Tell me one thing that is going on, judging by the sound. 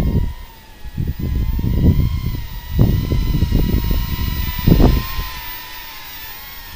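A small drone buzzes with a steady high whine as it flies nearby.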